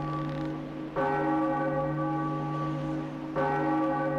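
A large bell rings out with a long, humming tone.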